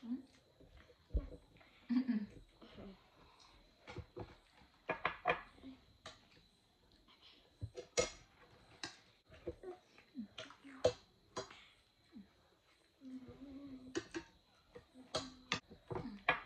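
Spoons and forks clink against plates.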